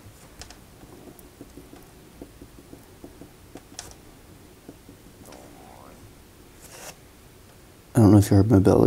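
A pen taps and scratches on paper in quick, light dots.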